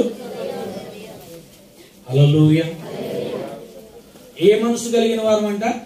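A man speaks with animation into a microphone, heard through a loudspeaker.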